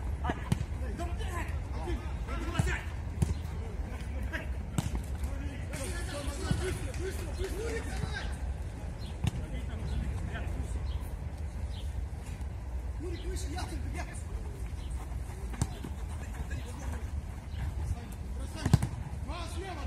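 A ball is kicked with sharp thumps.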